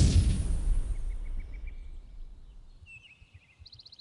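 A loud blast rumbles and slowly fades.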